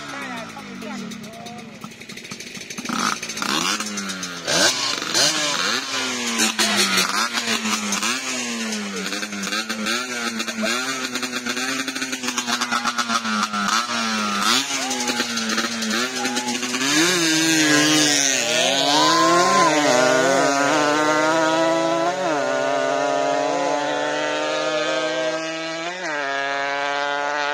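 A motorcycle engine revs hard again and again, rising and falling in pitch.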